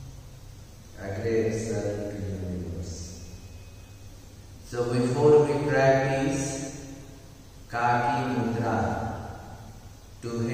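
A man speaks slowly and calmly close by, with pauses.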